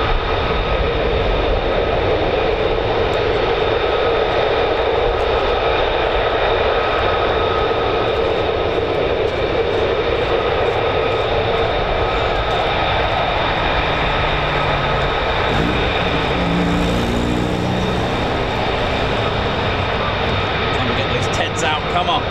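Jet engines roar loudly and steadily with a high whine.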